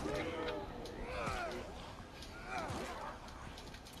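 A zombie groans and snarls up close.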